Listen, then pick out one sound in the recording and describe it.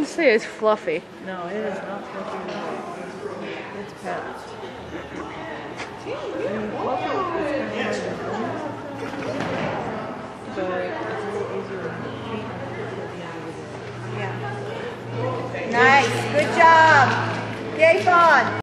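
A woman calls out commands to a dog, echoing in a large indoor hall.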